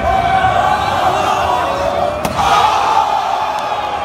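A wrestler's body slams hard onto a chair.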